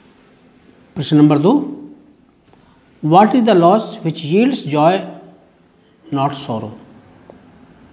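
A middle-aged man reads aloud calmly and close by, in short phrases with pauses.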